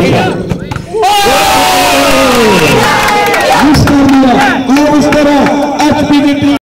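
A crowd of young men cheers and shouts outdoors.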